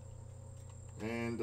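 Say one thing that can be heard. A man speaks close by in a calm voice.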